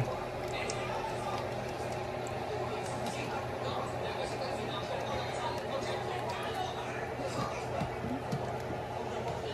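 A thick soup bubbles and simmers in a pot.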